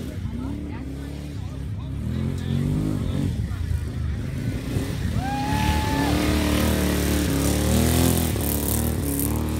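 Small cart engines hum and rev nearby, outdoors.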